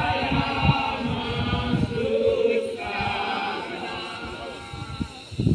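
A large crowd sings together outdoors, some way off.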